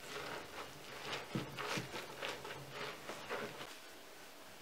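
Shredded cabbage crunches and squelches as a hand presses it into a crock.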